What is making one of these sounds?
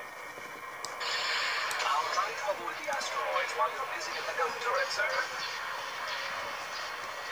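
Laser cannons fire in rapid bursts through small laptop speakers.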